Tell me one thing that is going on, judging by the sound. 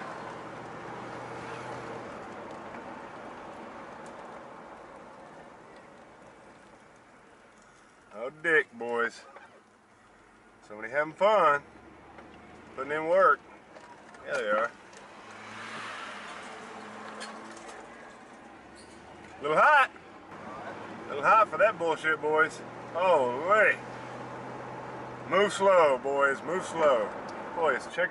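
A car engine hums steadily as tyres roll along a paved road.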